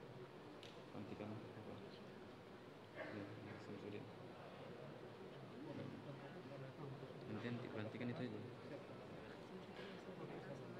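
Men recite together through a microphone in a large echoing hall.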